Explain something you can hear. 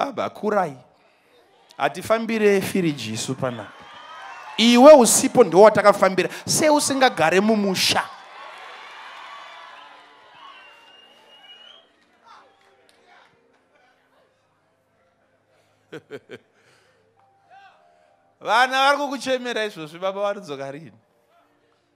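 A man preaches loudly and with animation through a microphone and loudspeakers in a large echoing space.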